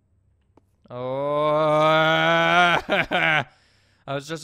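A young man shouts loudly in a long drawn-out cry.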